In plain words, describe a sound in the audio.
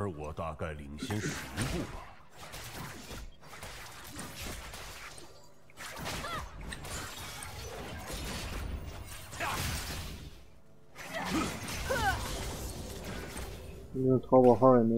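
Fantasy battle effects whoosh and clash.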